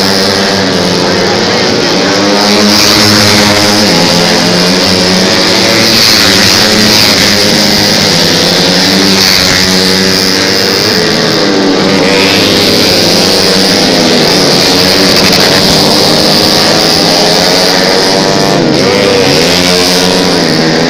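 Motorcycle engines rev loudly and roar past.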